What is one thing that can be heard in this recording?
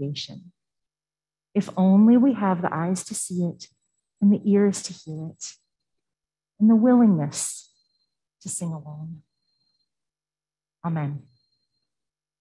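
A woman speaks with animation through a microphone in a large echoing hall.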